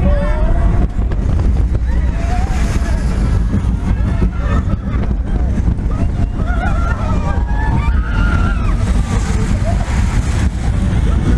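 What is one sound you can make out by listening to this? Riders scream and shriek.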